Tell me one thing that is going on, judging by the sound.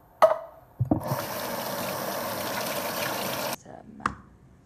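Tap water runs hard into a metal strainer.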